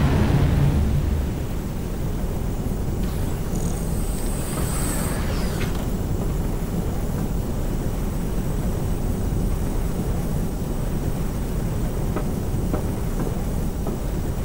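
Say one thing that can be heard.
Spacecraft engines roar with a deep, steady rumble.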